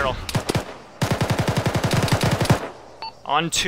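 A rifle fires rapid bursts of shots close by.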